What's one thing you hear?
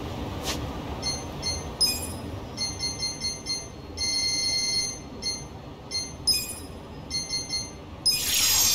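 Short electronic menu beeps tick rapidly.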